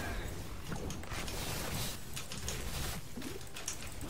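Energy beams buzz and whoosh.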